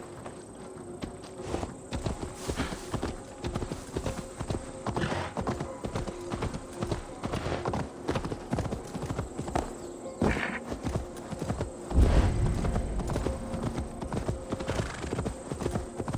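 Horse hooves thud steadily on a dirt path.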